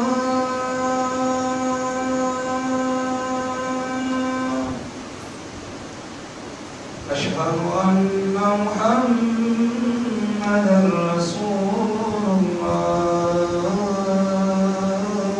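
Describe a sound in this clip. A man chants in long, drawn-out notes through a microphone in an echoing hall, pausing briefly between phrases.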